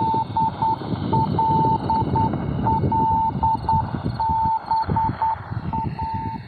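Static crackles and hisses from a shortwave radio.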